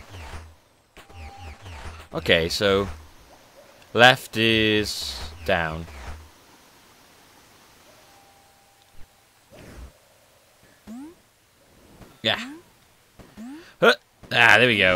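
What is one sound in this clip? Electronic game sound effects chirp and sweep in quick bursts.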